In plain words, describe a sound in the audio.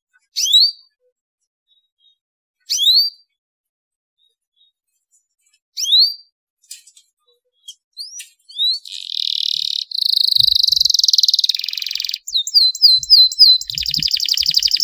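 A canary chirps in short rising calls, then breaks into a long rapid trilling song close by.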